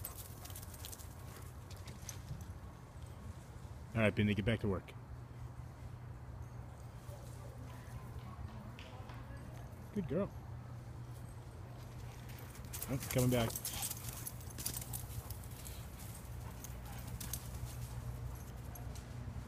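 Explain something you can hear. A dog digs with its paws, scratching through dry leaves and loose soil.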